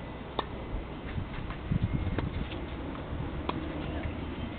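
A tennis racket hits a ball outdoors.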